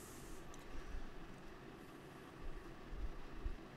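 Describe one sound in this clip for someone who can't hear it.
Playing cards shuffle and rustle softly between hands.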